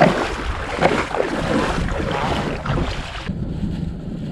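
Wind blows hard across open ground.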